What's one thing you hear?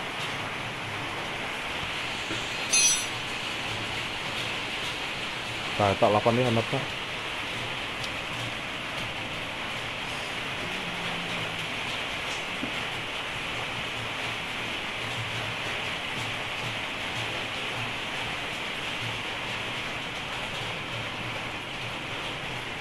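A car engine idles steadily up close.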